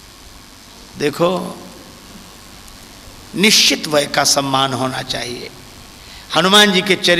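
A middle-aged man speaks with feeling into a microphone, heard through a loudspeaker with long pauses.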